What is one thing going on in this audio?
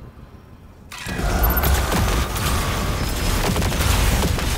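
Loud explosions roar and rumble.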